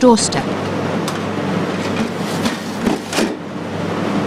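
Plastic crates clatter as a man handles them.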